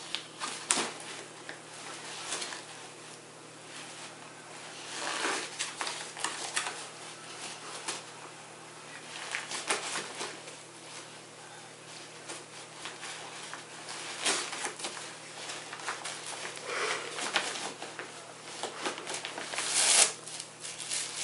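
A dog tears and rustles paper with its teeth.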